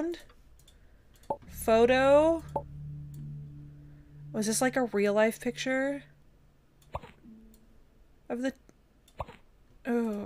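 A woman talks with animation into a close microphone.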